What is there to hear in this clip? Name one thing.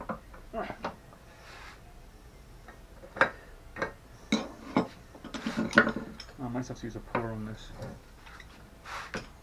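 Metal tools clink and tap against a metal motor housing.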